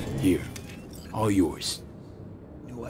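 A man answers calmly.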